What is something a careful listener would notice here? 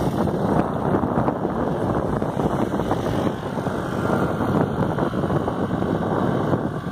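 A motorcycle engine hums nearby.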